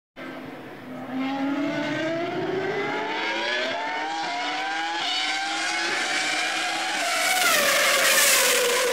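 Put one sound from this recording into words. A racing car engine roars at high revs, climbing in pitch and dropping with each gear change.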